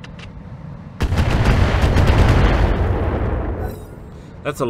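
An explosion booms and rumbles in a video game.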